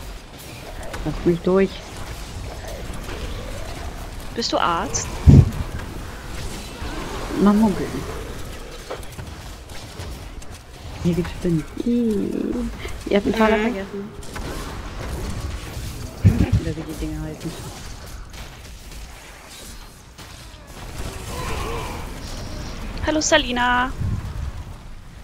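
A young woman talks calmly into a microphone, in short bursts.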